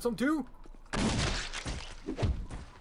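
A hammer strikes flesh with heavy, wet thuds.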